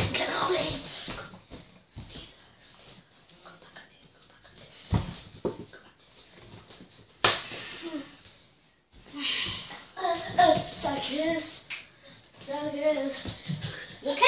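A young girl talks and laughs excitedly close by.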